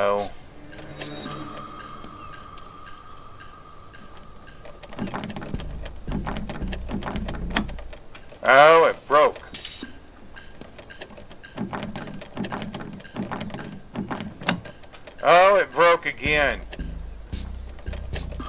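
A lock pick clicks and scrapes inside a door lock.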